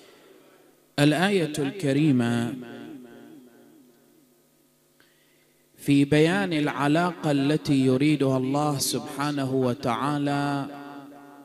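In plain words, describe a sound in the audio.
A man chants loudly through a microphone.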